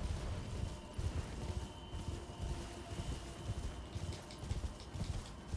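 Heavy footsteps thud steadily through grass.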